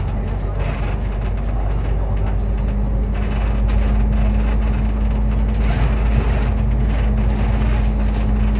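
A vehicle engine hums and rumbles steadily while driving.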